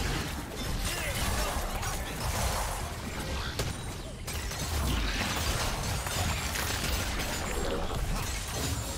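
Spell blasts and weapon hits crackle and boom in a fast video game battle.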